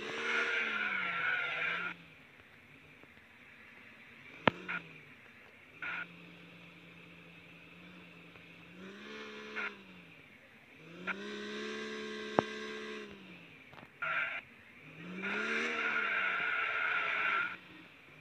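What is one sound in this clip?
A forklift engine hums and revs up and down.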